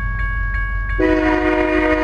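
A train horn blares loudly.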